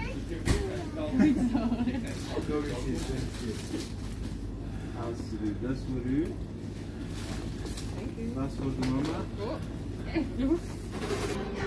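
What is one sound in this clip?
A small child babbles and chatters close by.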